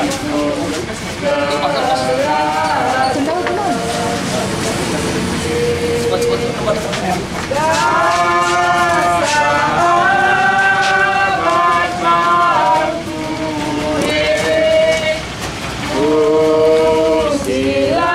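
A group of mourners sings a slow hymn nearby.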